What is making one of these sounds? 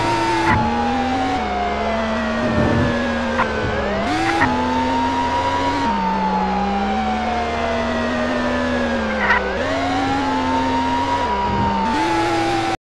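A car engine roars steadily, its pitch shifting with gear changes.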